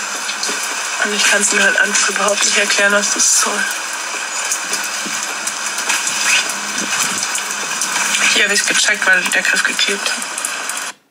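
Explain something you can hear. A middle-aged woman speaks calmly, close by.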